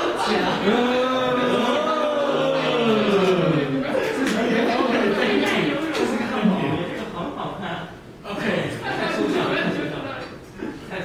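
A woman speaks with animation at a distance in a large, echoing room.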